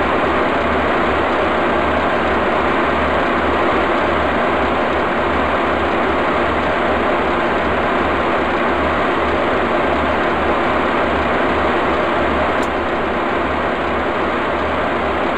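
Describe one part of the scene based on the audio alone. Train wheels clack over rail joints in a quick, even rhythm.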